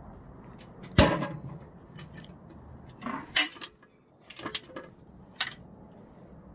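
A plastic lamp cover clicks and knocks as hands pry it open.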